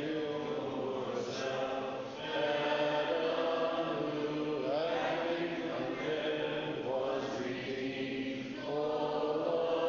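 A man chants in long, sustained tones that echo through a large hall.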